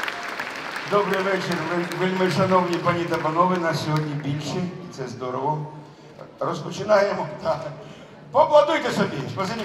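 A choir and band perform on stage in a large echoing hall.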